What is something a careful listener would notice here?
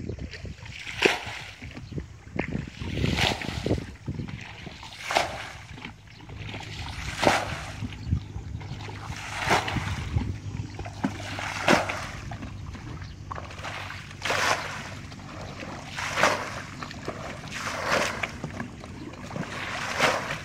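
Water splashes in rhythm as a bucket scoops and throws it out, again and again.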